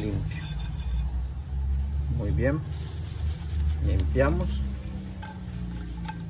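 A metal lid clinks and scrapes as it is handled.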